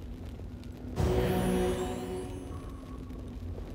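A magical healing spell rings out with a shimmering chime.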